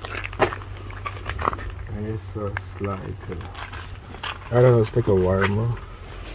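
Clothes rustle as they are handled.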